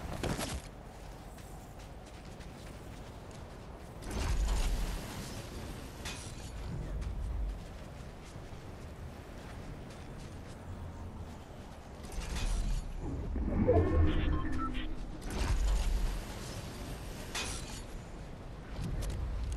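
Wind rushes past in loud bursts.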